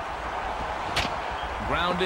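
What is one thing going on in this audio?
A wooden bat cracks against a baseball.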